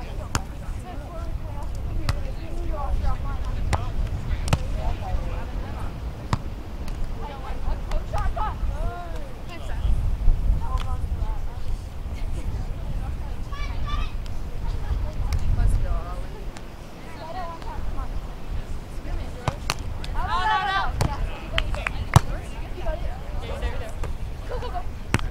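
Young women talk and call out casually outdoors.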